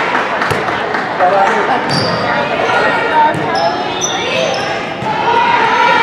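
A volleyball is struck with a hand.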